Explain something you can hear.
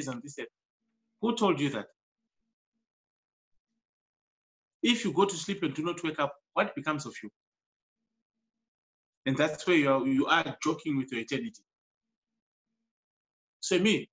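A man speaks calmly in bursts with pauses, heard through an online call.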